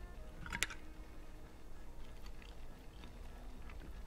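A tin can pops open with a metallic click.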